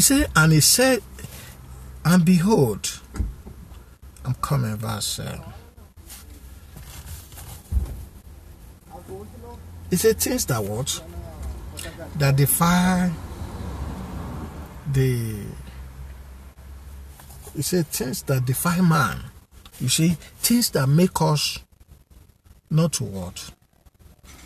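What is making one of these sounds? A man speaks close by in pauses, in a calm, slightly strained voice.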